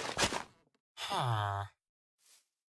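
A game villager grunts with a low, nasal murmur.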